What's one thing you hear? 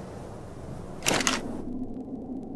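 A menu opens with a quick whoosh.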